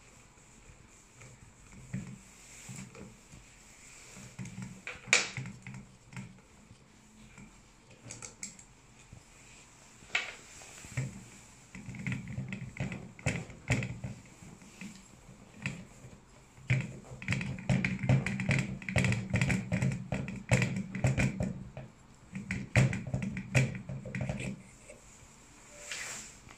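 Small metal parts click and clatter as they are handled.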